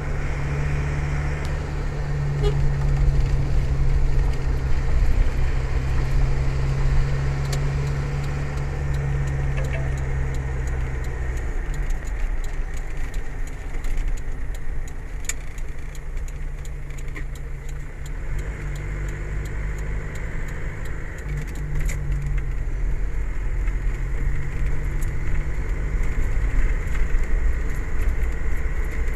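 Tyres roll over the road.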